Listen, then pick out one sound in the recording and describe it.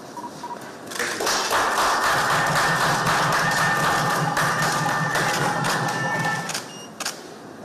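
A group of people applaud loudly.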